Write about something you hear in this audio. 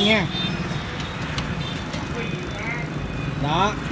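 A motorbike engine runs close by.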